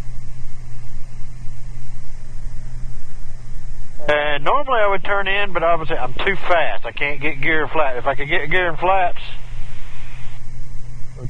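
A propeller aircraft engine drones steadily throughout.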